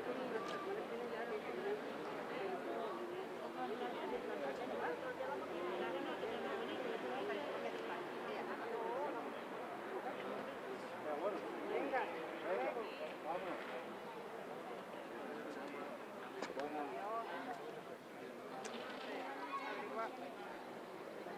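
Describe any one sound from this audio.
Several adults talk and chatter nearby outdoors.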